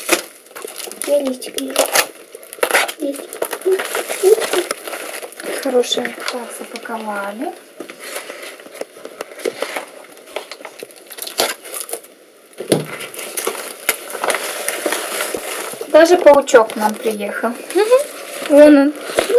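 Paper crinkles and rustles as it is handled.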